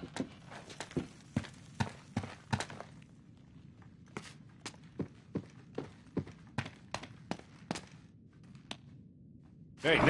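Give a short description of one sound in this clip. Footsteps crunch over broken wood and debris.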